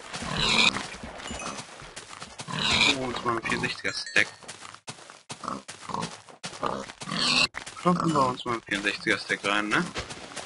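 A pig grunts and squeals when struck.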